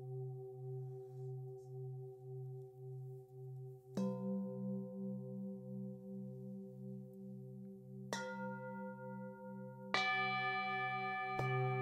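Metal singing bowls hum with a steady, pulsing ring.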